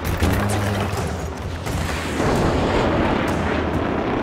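A loud explosion booms nearby and rumbles.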